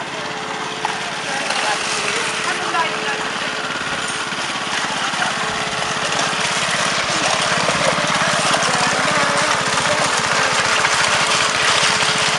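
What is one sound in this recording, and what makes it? A power trowel engine runs with a steady droning whir.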